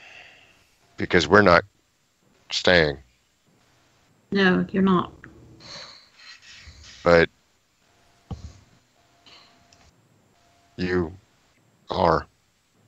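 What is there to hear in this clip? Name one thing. A man answers in short bursts over an online call.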